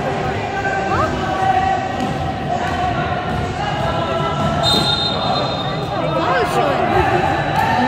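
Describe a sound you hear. Boys shout and call out to each other in a large echoing hall.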